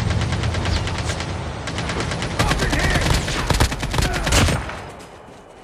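An assault rifle fires rapid bursts in a video game.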